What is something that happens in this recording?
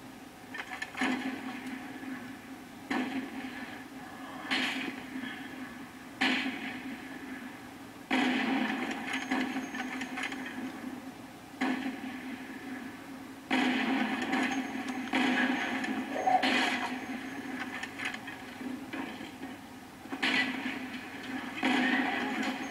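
Rifle shots boom sharply every few seconds, each followed by a short echo.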